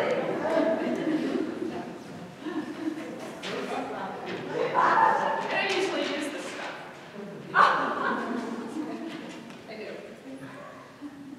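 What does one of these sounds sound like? A mixed choir sings together in a large echoing hall.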